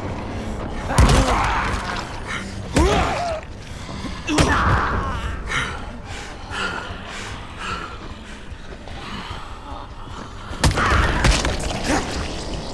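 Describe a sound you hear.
Heavy blows thud hard against a body.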